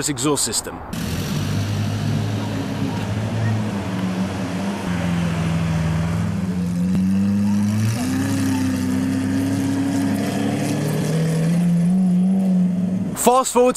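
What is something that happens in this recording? A sports car engine rumbles deeply at low revs.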